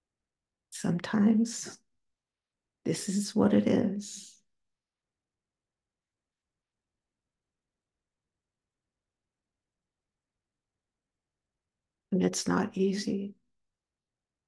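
A woman speaks calmly over a microphone, in short phrases with long pauses.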